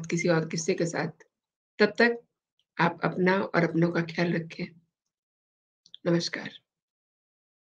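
A middle-aged woman speaks calmly into a close microphone, with pauses.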